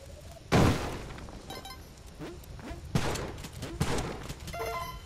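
Video game explosions boom.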